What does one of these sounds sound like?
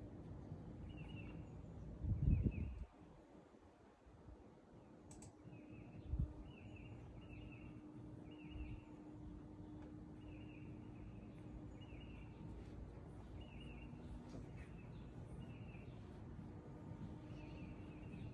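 A parrot makes soft, repeated chirps.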